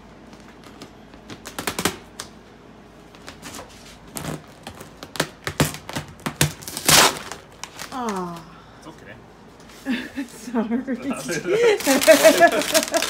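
Plastic film crinkles and rustles as it is handled.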